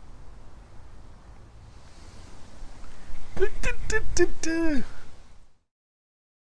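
An elderly man talks cheerfully close by.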